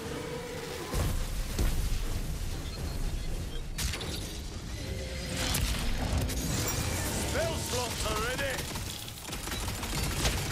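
Electric energy crackles and zaps loudly.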